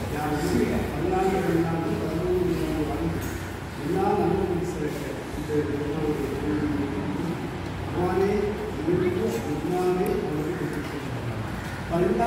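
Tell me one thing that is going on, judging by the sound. An elderly man reads out in a chanting voice.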